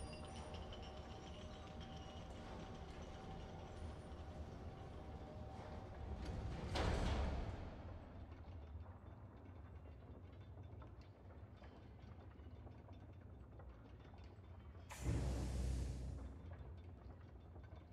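Heavy chains rattle and clank as a large metal machine is lowered.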